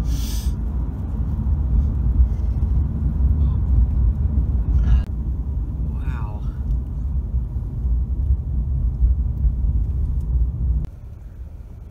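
A car rumbles steadily along the road, heard from inside.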